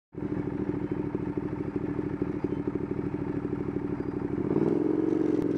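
A motorcycle engine idles with a rapid throbbing.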